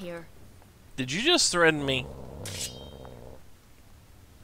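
A dog growls and snarls low.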